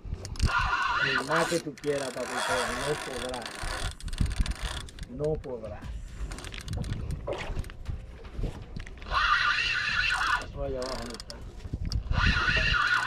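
Water sloshes against a boat's hull.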